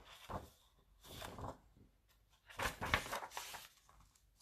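Paper rustles as a book page is turned.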